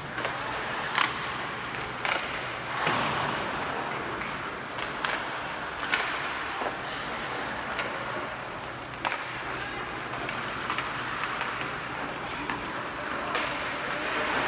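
Hockey sticks smack a puck with sharp clacks.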